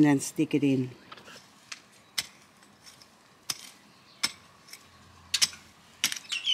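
A trowel scrapes and digs into soil.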